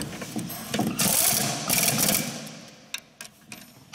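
A ratchet wrench clicks as it turns a bolt.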